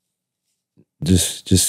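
A man answers into a close microphone.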